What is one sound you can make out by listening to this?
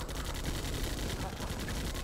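Guns fire in a brief skirmish.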